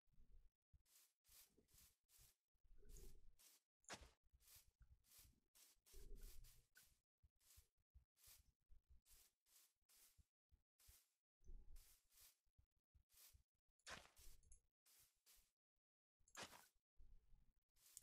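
Footsteps thud steadily on soft ground.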